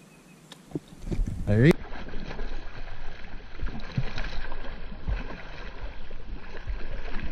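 A hooked fish splashes and thrashes at the water's surface.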